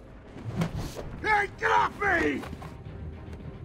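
A man grunts in pain as he is grabbed in a fight.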